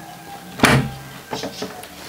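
A door handle clicks and a door thumps shut.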